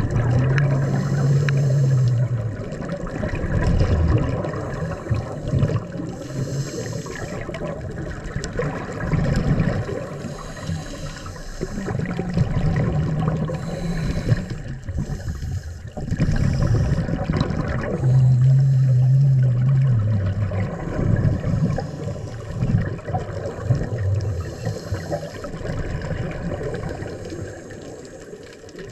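A diver breathes in through a scuba regulator.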